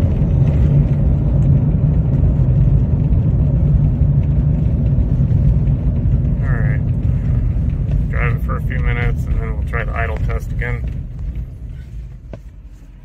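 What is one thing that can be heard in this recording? A car engine rumbles steadily up close.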